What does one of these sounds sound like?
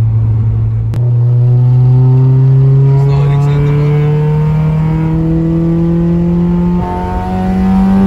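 A car engine revs up, rising in pitch as the car speeds up.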